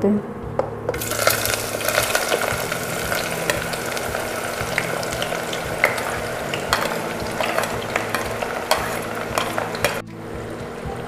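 Onions sizzle loudly as they drop into hot oil.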